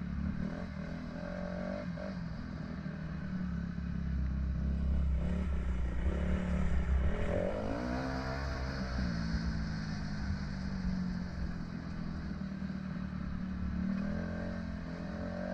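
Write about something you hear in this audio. A dirt bike engine runs, rising and falling in pitch as the rider speeds up and slows on a dirt trail.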